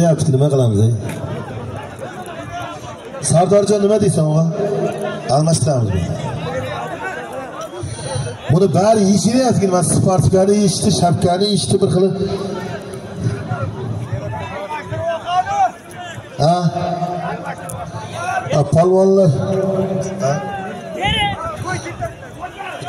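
A large crowd of men shouts and chatters outdoors.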